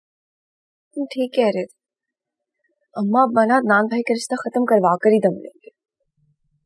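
A young woman speaks on a phone in a worried voice.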